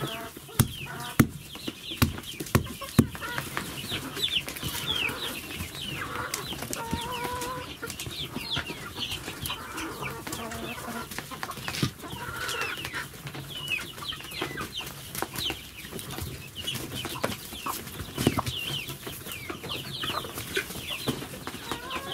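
Hens cluck and chirp softly close by.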